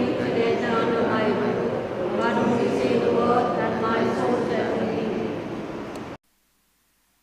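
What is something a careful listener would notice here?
A man chants aloud through a microphone.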